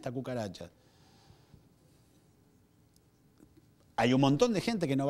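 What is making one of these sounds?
A man speaks with animation into a microphone, pausing between phrases.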